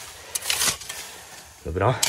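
Dry leaves rustle as a hand brushes them aside.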